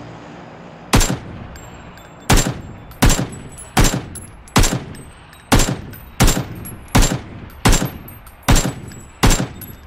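A rifle fires single shots in steady succession.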